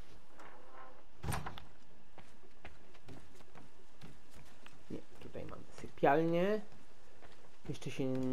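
Footsteps fall on a wooden floor indoors.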